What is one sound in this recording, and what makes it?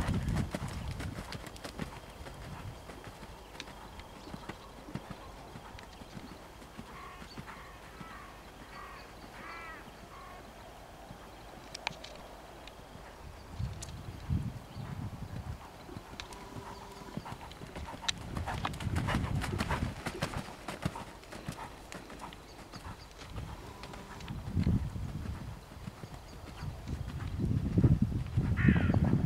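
A horse's hooves thud on soft sand as it trots.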